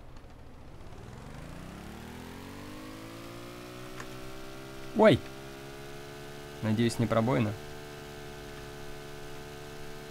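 An engine starts up with a rising hum and then drones steadily.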